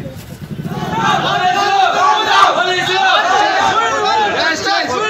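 A crowd of men shouts loudly and angrily at close range.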